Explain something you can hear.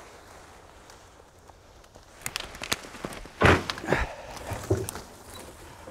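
Branches rustle and scrape as they are dragged over grass.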